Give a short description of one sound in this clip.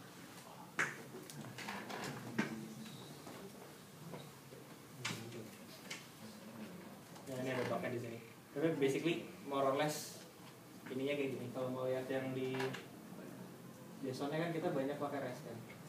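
A young man speaks calmly, heard from across the room.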